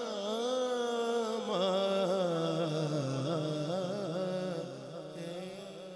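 A young man sings a slow, devotional chant into a microphone, heard through loudspeakers with a slight echo.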